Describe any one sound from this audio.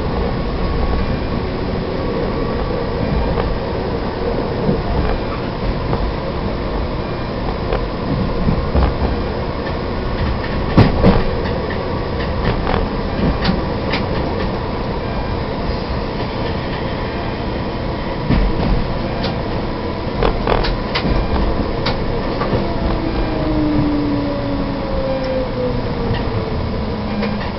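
Tram wheels click and clack over rail joints.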